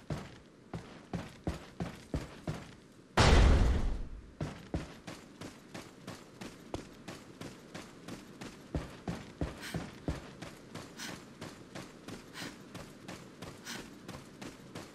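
Footsteps fall quickly and steadily on the ground.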